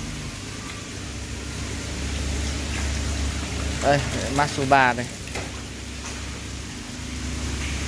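Water splashes as a hand stirs through crowded fish.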